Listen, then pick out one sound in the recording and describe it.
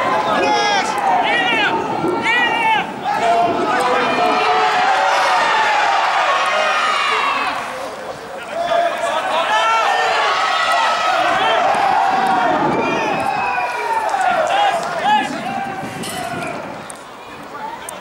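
Young men shout and call to each other loudly outdoors.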